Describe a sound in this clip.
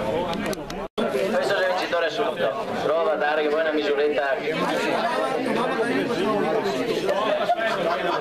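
A man speaks through a microphone and loudspeaker outdoors.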